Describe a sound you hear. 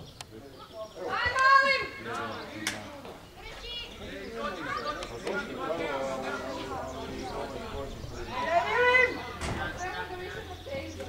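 A crowd of adult spectators shouts and cheers outdoors.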